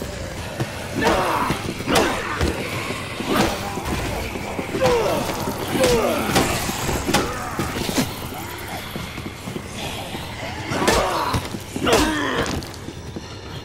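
Zombies groan and moan loudly.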